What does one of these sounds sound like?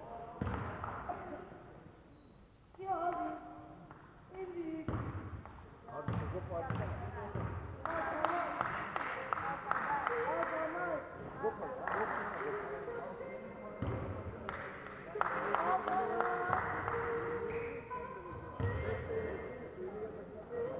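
Players' shoes squeak on a wooden court in a large echoing hall.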